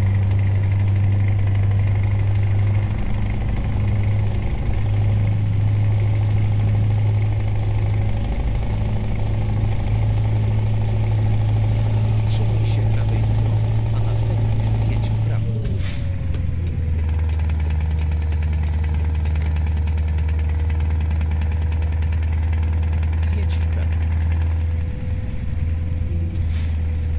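Tyres roll on the road.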